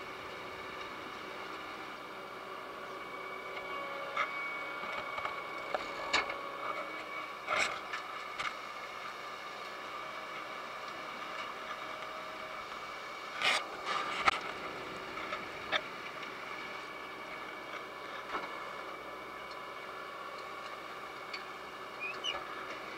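A harvester machine hums and rattles steadily.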